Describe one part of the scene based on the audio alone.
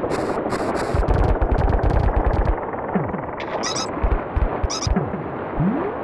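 Cartoonish game sound effects boing and thud.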